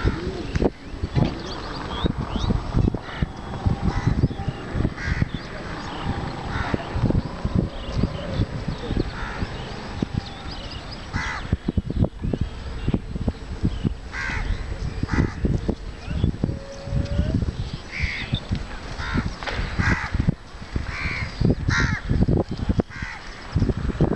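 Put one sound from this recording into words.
Cows tear and munch grass close by.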